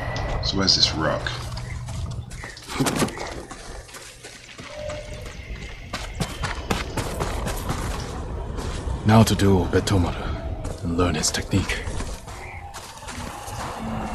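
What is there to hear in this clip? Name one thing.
Footsteps crunch in snow as a figure runs.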